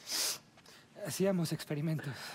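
A second young man answers in a relaxed voice.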